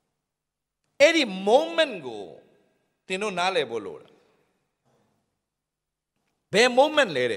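A man speaks with animation into a microphone, with pauses between phrases.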